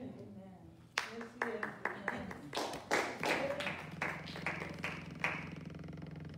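A group of people clap their hands rhythmically in an echoing room.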